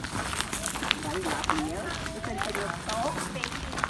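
Adults and children chatter nearby outdoors.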